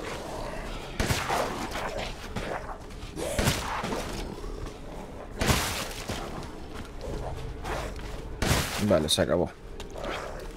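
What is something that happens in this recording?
A shotgun fires loud blasts several times.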